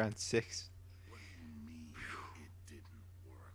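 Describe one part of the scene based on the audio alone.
A second man asks a question with surprise.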